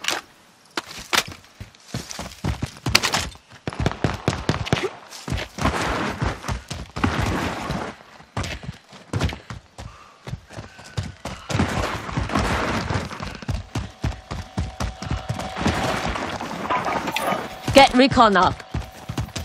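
Footsteps run across dirt ground.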